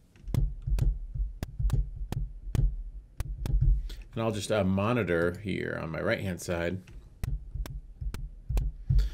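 A synthesizer plays a punchy electronic drum beat with a deep bass.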